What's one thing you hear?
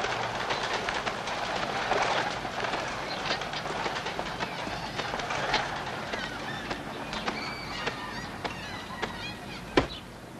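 A woman's footsteps tap on a paved sidewalk.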